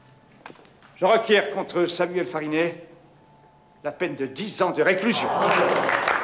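An elderly man speaks firmly to a room.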